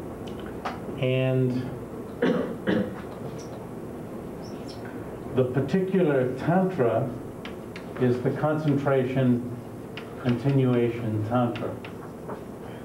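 A man talks calmly.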